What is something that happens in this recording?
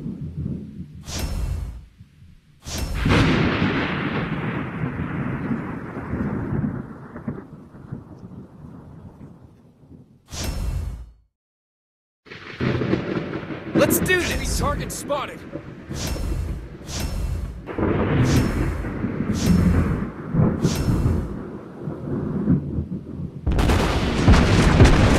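Heavy naval guns fire in loud booming salvos.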